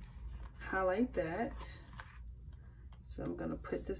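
A sticker peels off its backing sheet with a soft crackle.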